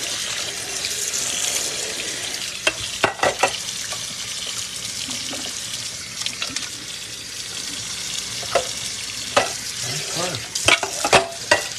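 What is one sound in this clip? Water runs steadily from a tap into a sink.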